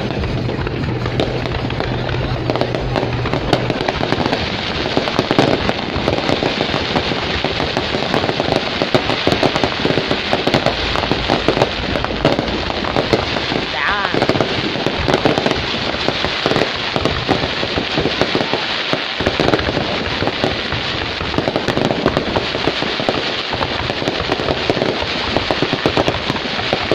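Fireworks bang in quick bursts.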